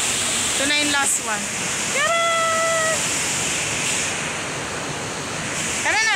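A waterfall rushes and splashes.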